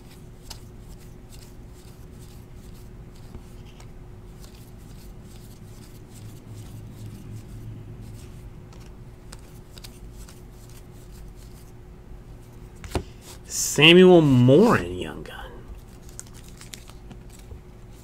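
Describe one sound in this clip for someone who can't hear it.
Trading cards flick and rustle as they are shuffled by hand.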